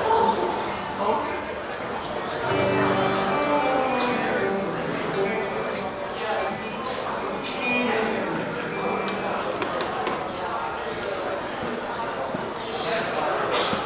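A live band plays rock music with guitars and drums in a large echoing hall.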